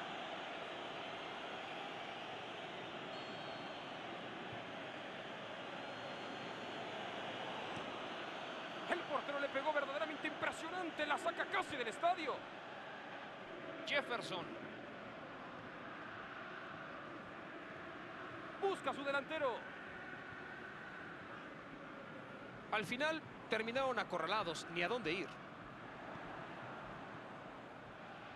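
A stadium crowd murmurs and cheers steadily throughout.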